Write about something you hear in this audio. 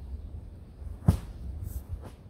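A heavy wooden log thumps onto the ground.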